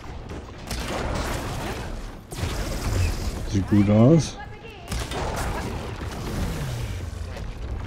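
Crackling energy blasts and explosions boom in a fight.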